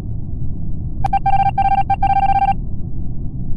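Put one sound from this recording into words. Short electronic beeps tick rapidly, one after another.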